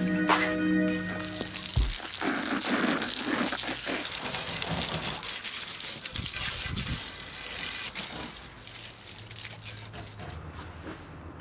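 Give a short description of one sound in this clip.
Water sprays from a hose and splashes on the ground.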